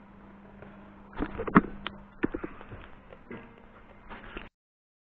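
A guitar amplifier hums steadily.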